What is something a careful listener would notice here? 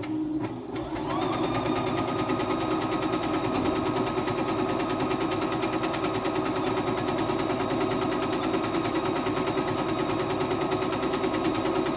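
A sewing machine whirs rapidly, its needle stitching in a fast, steady rhythm.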